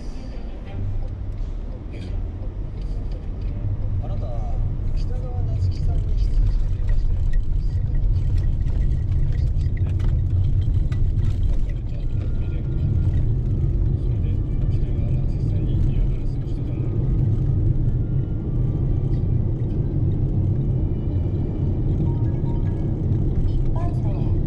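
A large vehicle's engine rumbles low and steady from inside the cab.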